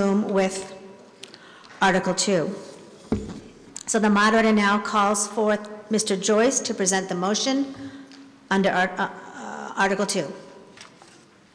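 A middle-aged woman speaks steadily into a microphone in a large echoing hall.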